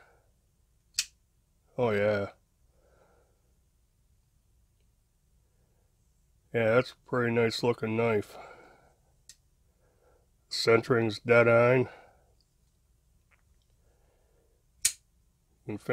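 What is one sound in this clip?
A folding knife's blade snaps open with a sharp click.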